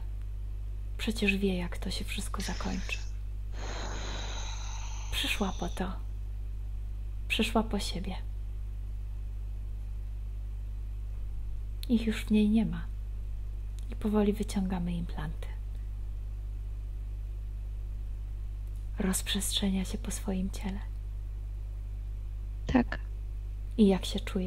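A young woman speaks calmly through a headset microphone on an online call.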